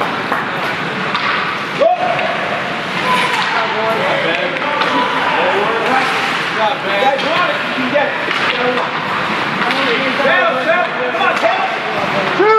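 Young men shout to each other across an echoing rink.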